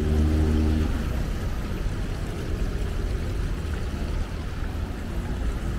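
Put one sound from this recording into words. A small fountain jet splashes into a stone basin.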